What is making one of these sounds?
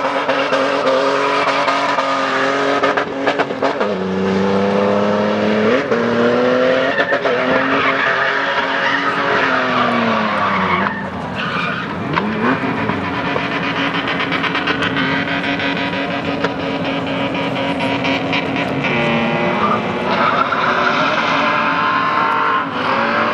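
Tyres squeal and screech on the pavement.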